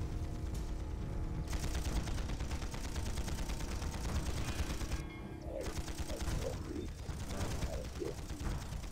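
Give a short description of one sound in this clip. Footsteps run quickly over packed dirt.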